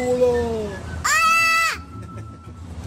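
A young girl screams loudly close to the microphone.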